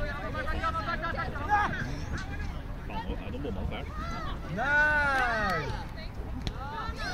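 Children shout and call out outdoors in the distance.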